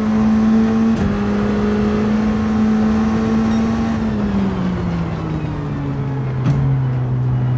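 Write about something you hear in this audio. A gearbox shifts with a short sharp clack.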